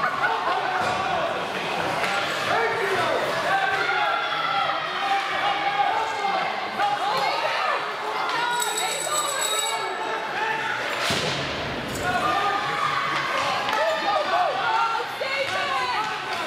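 A crowd of spectators chatters and calls out nearby in a large echoing hall.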